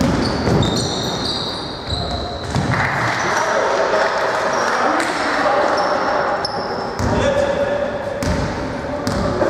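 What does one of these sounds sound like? Sneakers squeak sharply on a hardwood court in an echoing hall.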